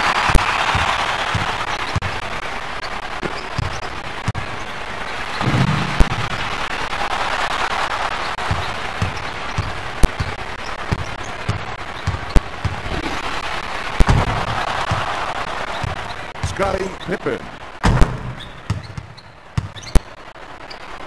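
A basketball bounces on a hardwood court in a video game.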